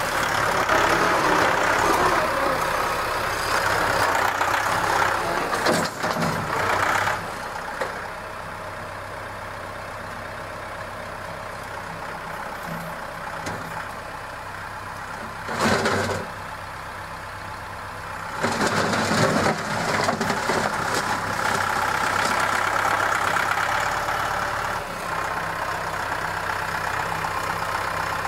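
A loader bucket scrapes and pushes dirt and gravel.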